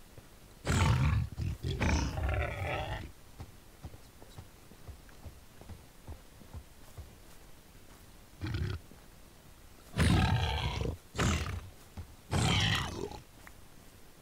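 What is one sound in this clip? A large beast grunts and snorts loudly, in short bursts.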